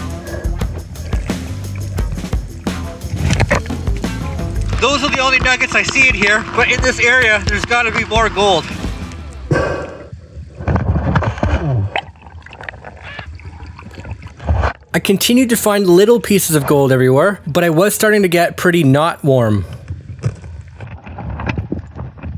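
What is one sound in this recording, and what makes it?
Water rushes and gurgles in a stream.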